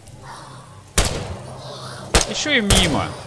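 A rifle fires a sharp shot.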